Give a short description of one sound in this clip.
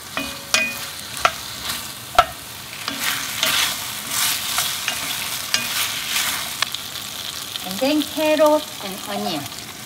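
Meat and potatoes sizzle in a pot.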